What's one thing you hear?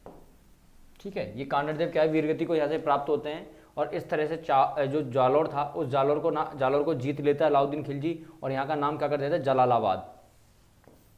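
A young man lectures with animation close to a microphone.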